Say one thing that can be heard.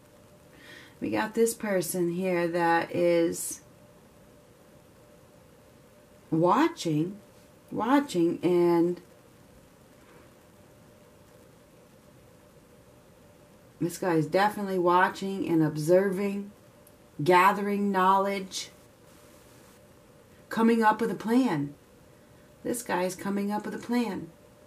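A woman speaks calmly and close by, in short phrases with pauses.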